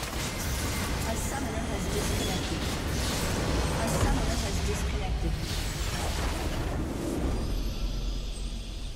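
Game spell effects crackle and boom in a busy fight.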